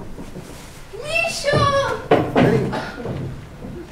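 A boy cries out loudly.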